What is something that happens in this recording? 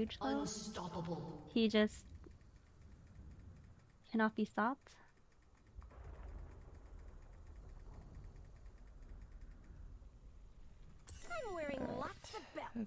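A young woman talks casually into a nearby microphone.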